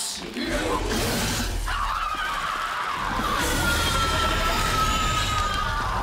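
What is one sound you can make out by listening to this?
A creature bursts apart with a loud shattering crash.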